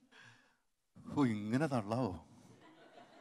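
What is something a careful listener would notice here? A young man speaks cheerfully into a microphone.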